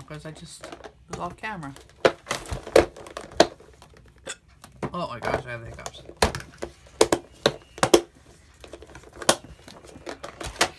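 Rubber stamps rattle inside a plastic box.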